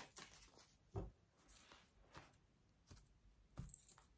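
Cards tap down lightly on a soft surface.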